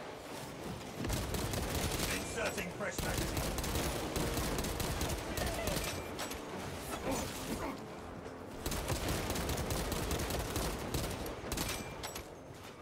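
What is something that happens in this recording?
Rapid gunfire rattles loudly in bursts.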